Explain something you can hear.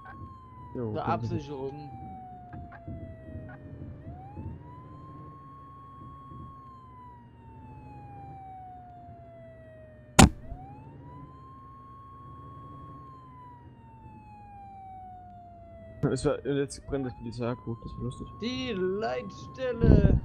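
A fire engine siren wails, rising and falling slowly.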